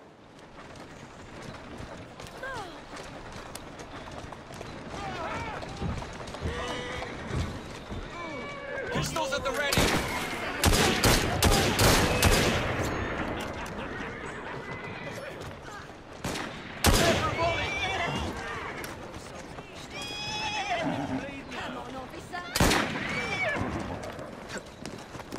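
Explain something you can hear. Horse hooves clatter on cobblestones.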